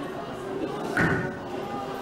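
A gavel strikes a wooden bench once.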